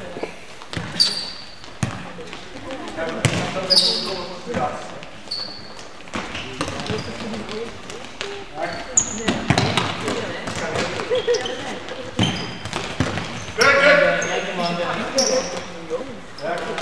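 Sneakers squeak on a hard floor.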